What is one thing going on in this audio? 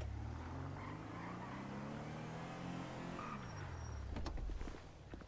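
A van's engine hums as it drives, then winds down.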